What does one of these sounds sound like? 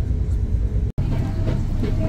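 A suitcase rolls on its wheels.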